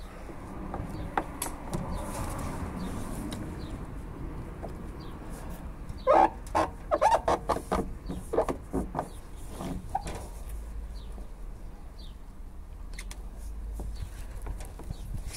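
A plastic trim strip snaps and clicks into place.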